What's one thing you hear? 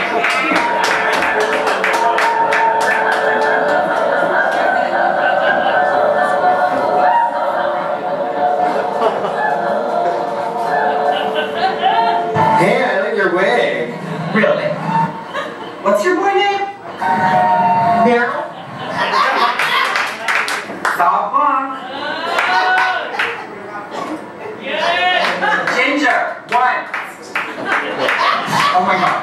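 Music plays loudly through loudspeakers in an echoing room.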